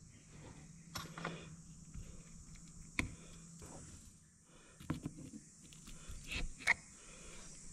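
Metal parts clink and knock against each other.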